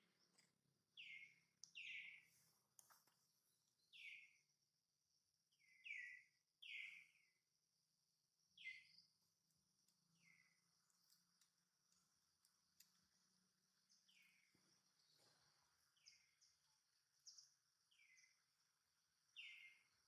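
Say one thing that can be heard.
A baby monkey squeaks in short, high, falling cries again and again.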